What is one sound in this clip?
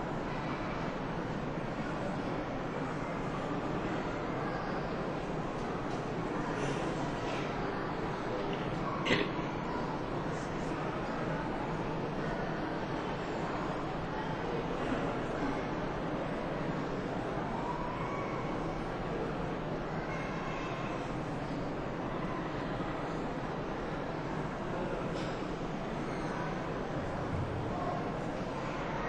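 A crowd murmurs quietly indoors.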